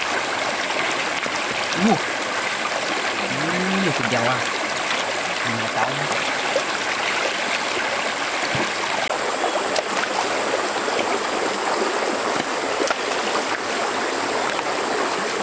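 Hands splash and scrape among stones in shallow water.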